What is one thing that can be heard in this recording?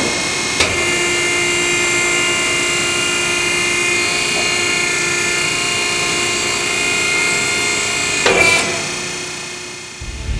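A grinding machine whines steadily, then winds down.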